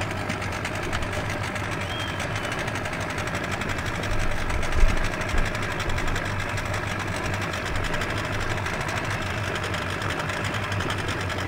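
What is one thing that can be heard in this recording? An outboard motor hums steadily close by.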